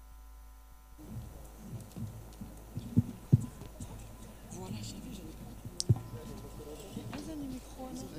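Several men talk indistinctly some distance away outdoors.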